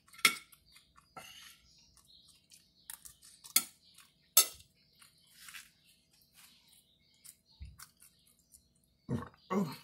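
A woman chews food with wet, smacking sounds.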